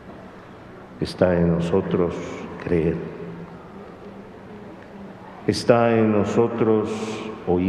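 A middle-aged man speaks slowly and solemnly into a microphone in a reverberant hall.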